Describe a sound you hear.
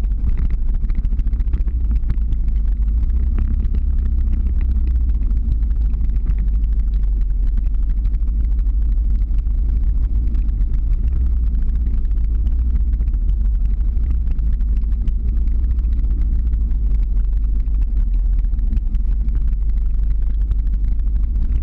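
Wind rushes and buffets loudly past.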